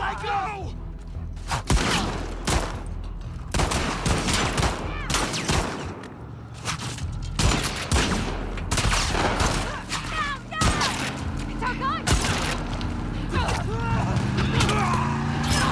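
A woman screams in panic.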